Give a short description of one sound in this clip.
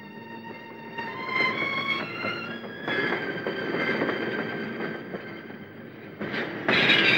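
A train rumbles closer along the tracks.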